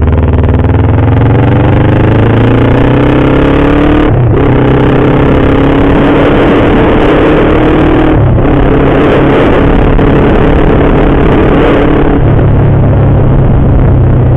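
A car engine drones and rises in pitch as the car speeds up, dropping briefly at each gear change.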